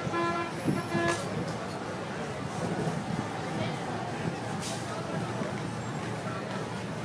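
Traffic and passers-by make a steady low hum along an outdoor street.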